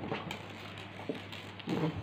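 Fabric rustles as a hand handles it.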